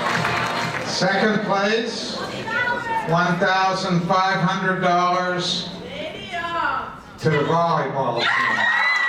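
An elderly man speaks with animation through a microphone.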